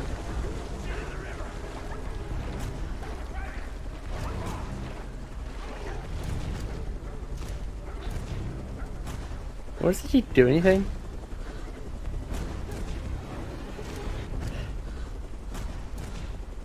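Water splashes as a man wades through a river.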